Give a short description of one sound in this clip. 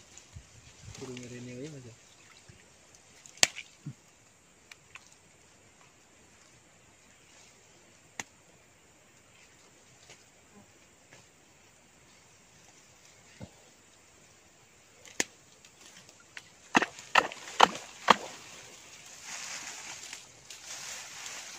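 A man digs with his hands in wet mud, with soft squelching and rustling.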